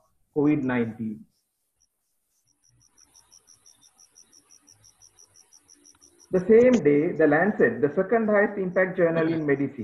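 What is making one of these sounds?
A man speaks calmly through a microphone, as if giving a talk over an online call.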